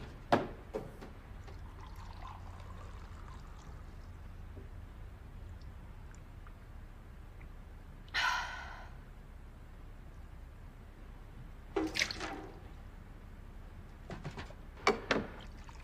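Dishes and objects clatter on a counter.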